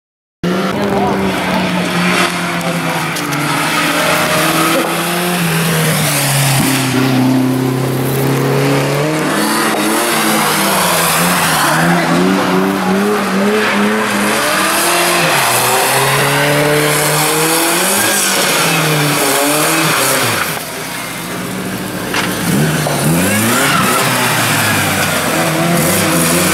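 Car engines rev hard and loud, rising and falling.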